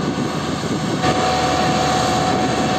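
A road roller's engine drones steadily.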